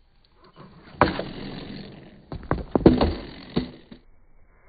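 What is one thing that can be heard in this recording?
A skateboard clatters and slaps on concrete.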